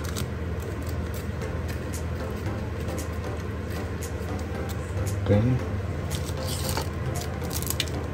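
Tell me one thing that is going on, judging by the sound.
Small metal pieces click and tap softly as they are handled.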